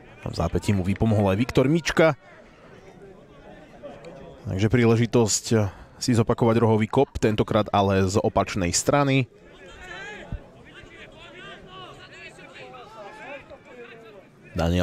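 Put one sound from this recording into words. A crowd of spectators murmurs and calls out faintly outdoors.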